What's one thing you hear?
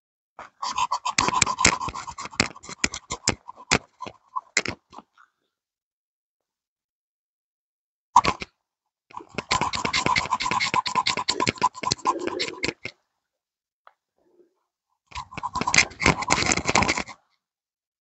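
A tool scrapes and rasps rapidly against tree bark in short bursts.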